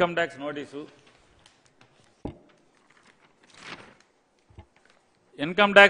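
Paper rustles as a man handles sheets.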